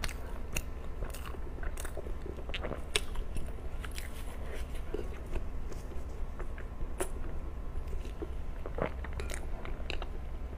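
Soft cake crumbles and tears apart in a young woman's hands close to a microphone.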